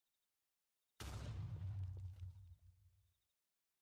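A cannon fires with a loud, rumbling boom that slowly fades.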